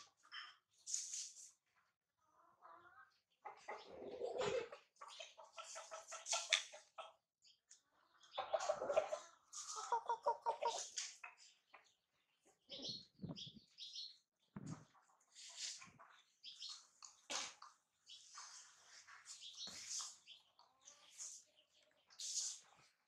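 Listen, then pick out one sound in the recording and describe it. A baby monkey squeaks and chirps.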